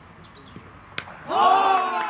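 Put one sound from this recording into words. A cricket bat knocks a ball with a sharp crack.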